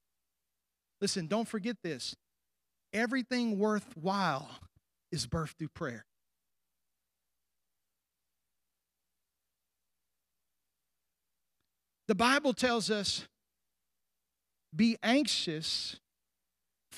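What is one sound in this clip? A middle-aged man speaks with animation into a microphone, with pauses.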